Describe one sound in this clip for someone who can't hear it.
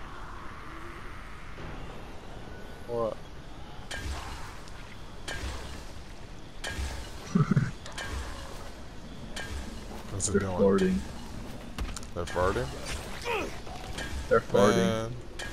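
A blade strikes flesh with heavy, wet thuds.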